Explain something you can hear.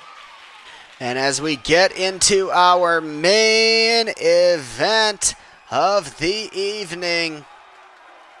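A man speaks loudly to a crowd through a microphone in a large echoing hall.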